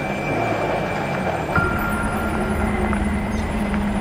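Tyres crunch on a dirt road.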